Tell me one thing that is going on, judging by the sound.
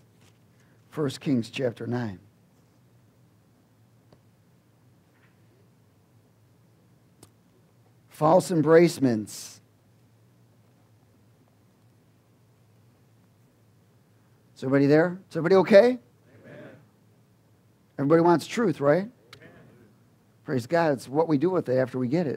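A man speaks in short bursts with long pauses, heard through a microphone.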